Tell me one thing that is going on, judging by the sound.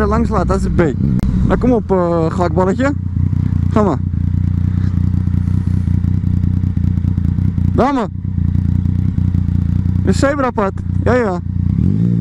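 A motorcycle engine idles with a steady, low rumble.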